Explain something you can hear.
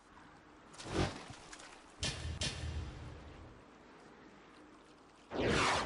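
Magic spells whoosh and burst in short, loud blasts.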